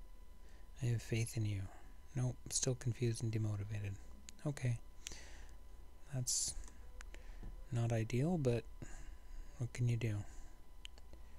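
An elderly man talks calmly into a close microphone.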